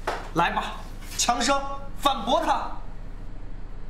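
A man speaks intensely and close by.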